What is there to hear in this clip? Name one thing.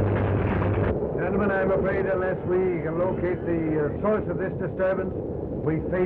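A man speaks calmly nearby, with a muffled, old-fashioned sound.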